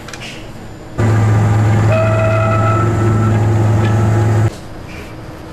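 A machine hums loudly and steadily.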